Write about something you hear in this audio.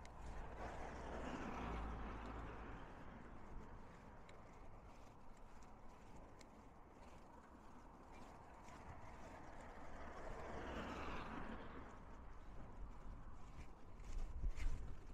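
Waves wash against rocks, swelling and fading.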